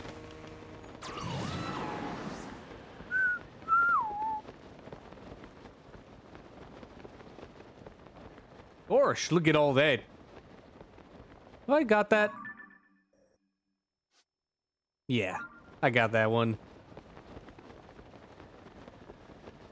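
Wind rushes past a paraglider in flight.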